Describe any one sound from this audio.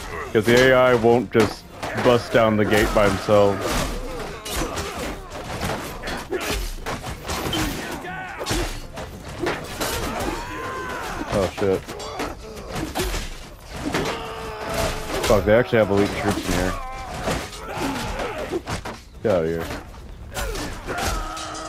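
Weapons clash and clang against shields in a crowded battle.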